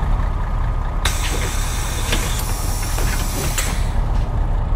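Bus doors open with a loud hiss of air.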